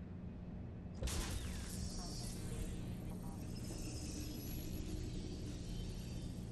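An electronic whoosh and crackle sounds sharply.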